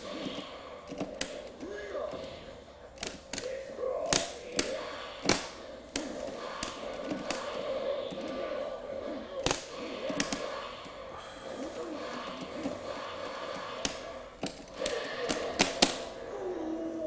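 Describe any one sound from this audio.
Video game punches and kicks thud and smack over a speaker.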